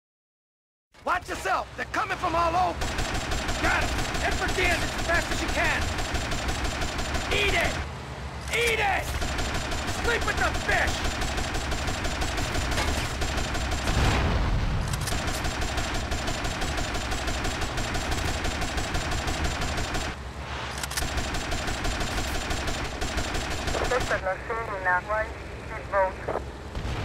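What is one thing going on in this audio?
A speedboat engine drones at full throttle.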